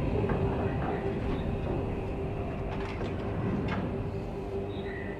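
A low engine rumble drones steadily.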